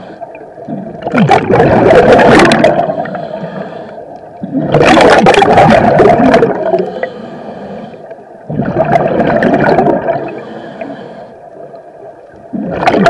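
A scuba diver breathes out through a regulator in loud, gurgling bursts of bubbles underwater.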